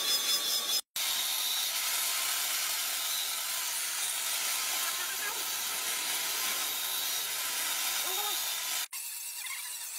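An angle grinder screeches as it cuts through metal.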